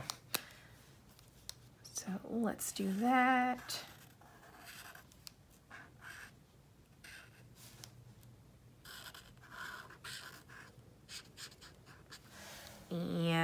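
A felt-tip marker squeaks and scratches softly across paper.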